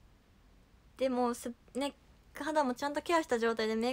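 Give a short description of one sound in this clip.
A young woman speaks softly and with animation, close by.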